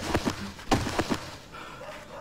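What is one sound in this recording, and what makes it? Heavy kicks thud against a body.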